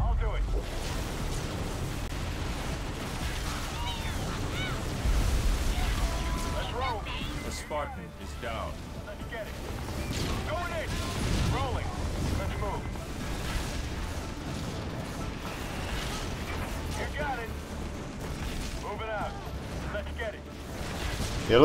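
Game gunfire and explosions rumble and crackle throughout.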